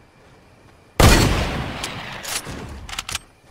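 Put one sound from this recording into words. A gun fires with a loud boom that slowly rolls away.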